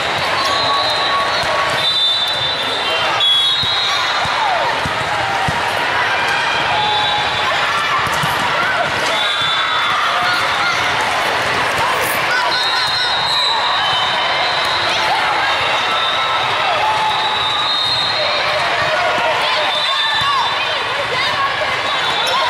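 A volleyball thuds off players' hands.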